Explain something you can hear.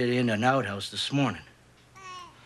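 A man speaks tensely close by.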